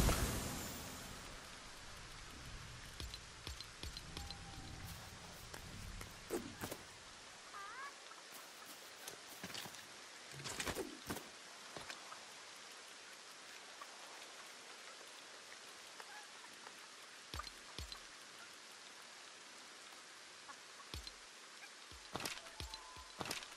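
Soft game menu clicks sound as items are picked and moved.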